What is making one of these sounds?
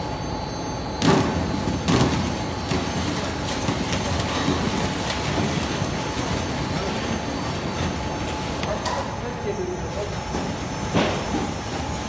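Baked loaves tumble and knock against each other as they drop from a conveyor.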